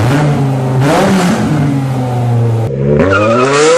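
An engine revs loudly on a test stand.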